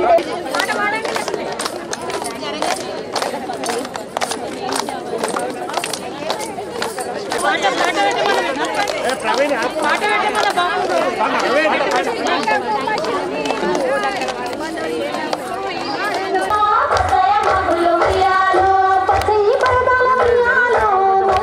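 A group of women sing together outdoors.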